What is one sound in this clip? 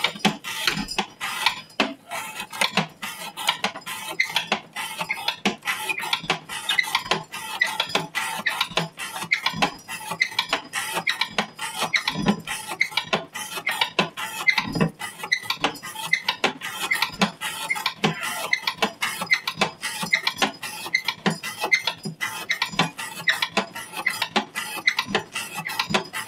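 Small metal parts clink and rattle steadily.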